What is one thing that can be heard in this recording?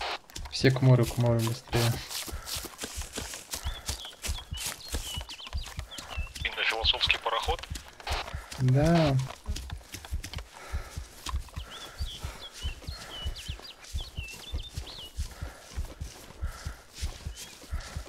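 Footsteps crunch steadily over grass and leaves.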